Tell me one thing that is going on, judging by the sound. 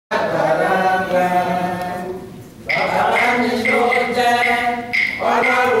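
A group of women sing together.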